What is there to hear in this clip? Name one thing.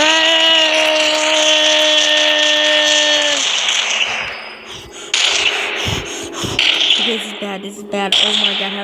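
A small gun fires in quick bursts.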